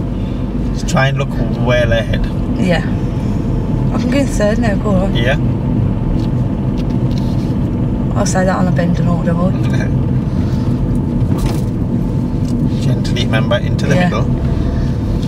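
A man speaks calmly nearby inside a car.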